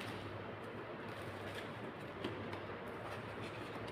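Playing cards are shuffled by hand.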